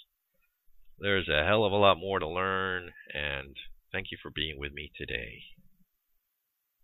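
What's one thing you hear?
A man speaks calmly and warmly into a microphone, close by.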